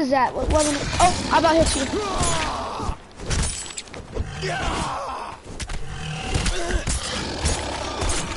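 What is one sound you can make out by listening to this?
A pickaxe strikes a large creature with dull thuds.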